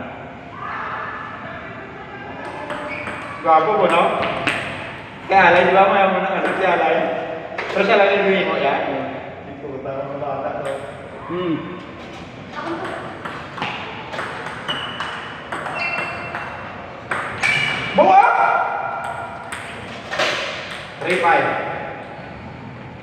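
Young boys talk and shout with animation nearby.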